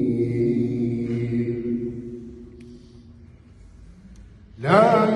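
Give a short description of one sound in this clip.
A man chants long, drawn-out notes into a microphone, heard through loudspeakers in a large echoing hall.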